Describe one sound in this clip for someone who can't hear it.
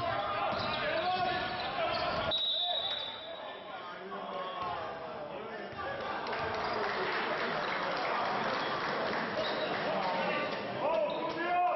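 Sneakers squeak on a hardwood court in an echoing hall.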